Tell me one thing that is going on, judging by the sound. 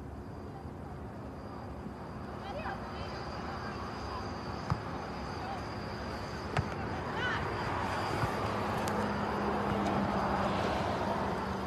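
A crowd of spectators chatters and murmurs nearby outdoors.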